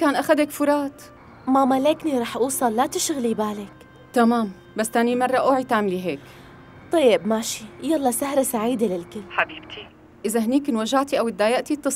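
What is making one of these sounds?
A woman speaks tensely on a phone.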